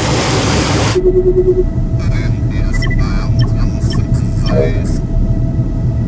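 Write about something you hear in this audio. Electronic consoles beep and chirp.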